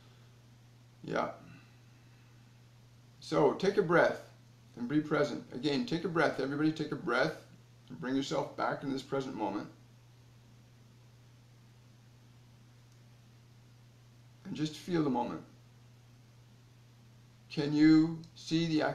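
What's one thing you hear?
A middle-aged man speaks calmly and with emphasis close to a microphone, with pauses.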